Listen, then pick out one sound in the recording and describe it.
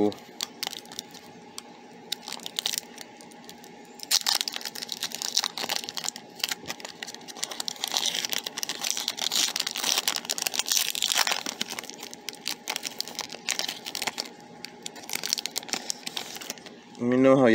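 A foil wrapper crinkles and tears as hands pull it open.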